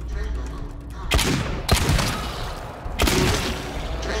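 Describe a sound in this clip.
A gun fires several loud shots.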